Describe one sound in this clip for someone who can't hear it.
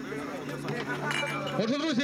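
A man speaks into a microphone over a loudspeaker outdoors.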